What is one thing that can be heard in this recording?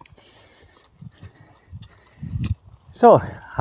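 Footsteps crunch on grass outdoors.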